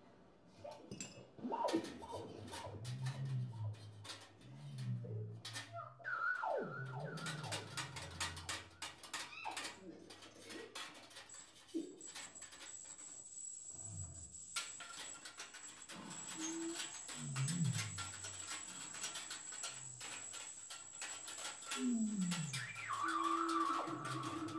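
Metal parts rattle and click.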